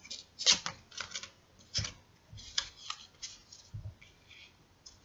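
Cards rustle and flick as a deck is shuffled by hand.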